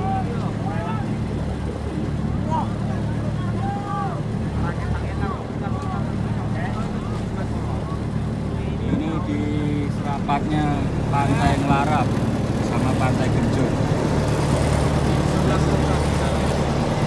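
A boat engine hums steadily close by.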